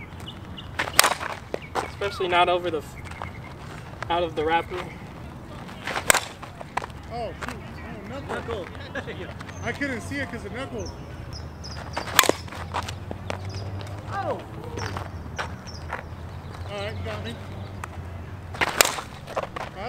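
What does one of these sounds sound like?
A metal bat cracks sharply against a ball, again and again.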